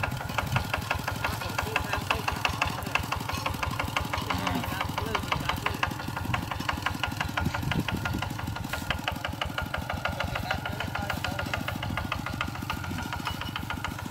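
A small diesel engine chugs steadily at close range.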